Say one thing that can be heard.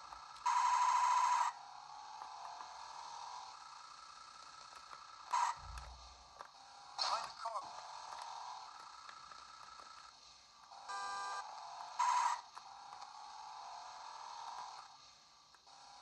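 Electronic game sounds and beeps play from a small, tinny speaker.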